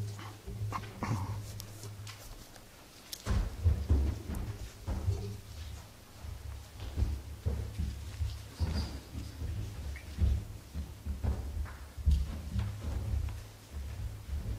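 Men and women chat quietly at a distance in a large room.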